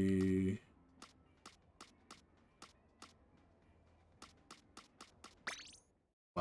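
Menu selection clicks tick quickly, one after another.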